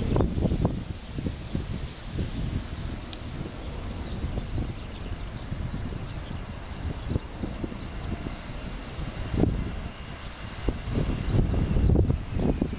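A jet airliner's engines rumble in the distance as it comes in to land.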